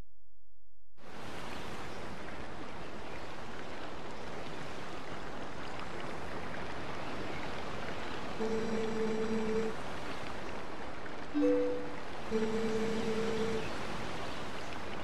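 A waterfall rushes and splashes steadily.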